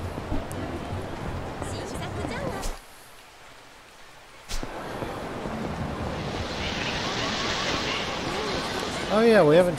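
A busy street murmurs with distant chatter.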